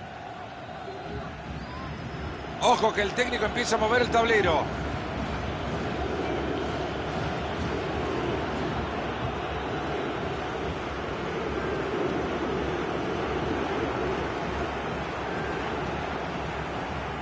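A large stadium crowd roars and chants steadily throughout.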